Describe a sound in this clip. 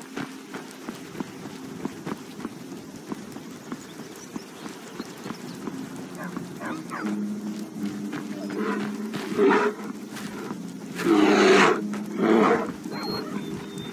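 Footsteps crunch over stony ground.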